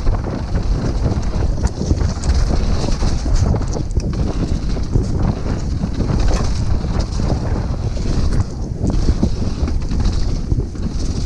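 Knobby tyres of a downhill mountain bike roll fast over a rough dirt trail.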